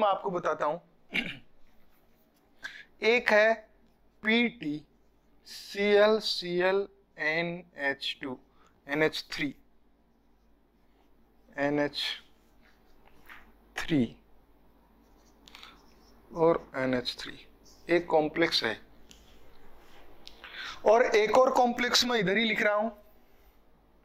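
A young man speaks calmly and clearly into a close microphone, explaining.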